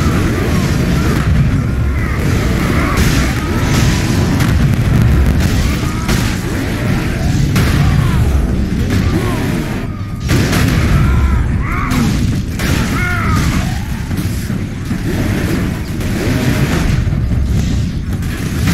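Monsters screech and snarl.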